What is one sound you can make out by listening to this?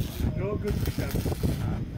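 An electric welding arc crackles and sizzles.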